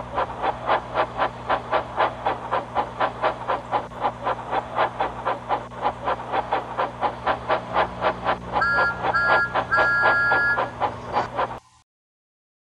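A steam engine chuffs steadily.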